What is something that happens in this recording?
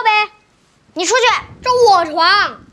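A young boy speaks boldly, close by.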